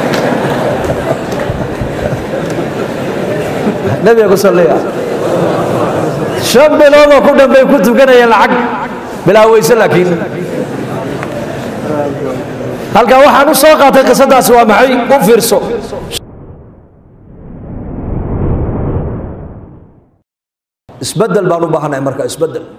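A man speaks forcefully into a microphone, his voice amplified in a room.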